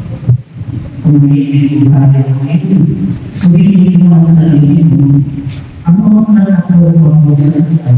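A man speaks through a microphone over a loudspeaker.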